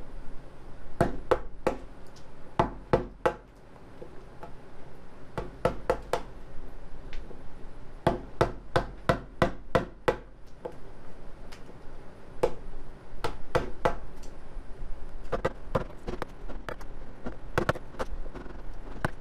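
A wooden mallet taps a chisel into wood in quick bursts of sharp knocks.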